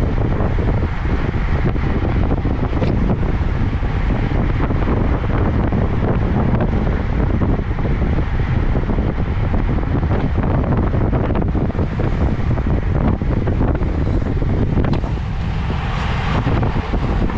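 Bicycle tyres hum on smooth pavement.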